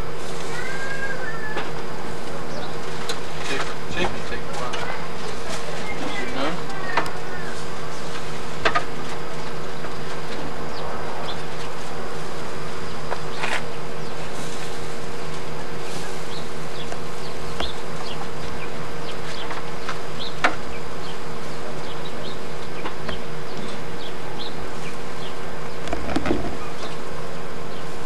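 Meat sizzles on a grill.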